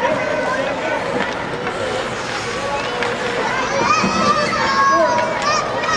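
Ice skates scrape and swish across ice.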